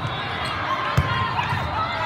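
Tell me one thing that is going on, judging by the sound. A volleyball is struck with a dull smack.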